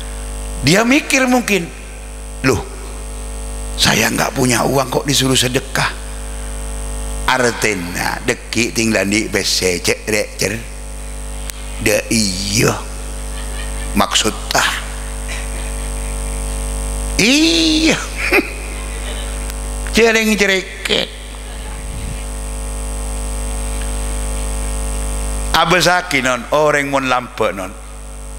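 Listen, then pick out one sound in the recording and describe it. An elderly man preaches with animation through a microphone and loudspeakers, pausing between phrases.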